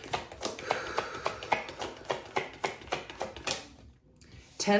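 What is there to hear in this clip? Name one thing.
Cards riffle and tap as they are shuffled.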